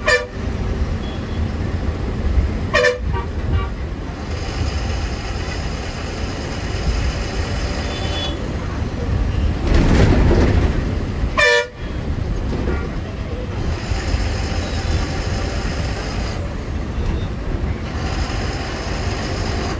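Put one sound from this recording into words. A bus engine rumbles steadily from inside as it drives along a road.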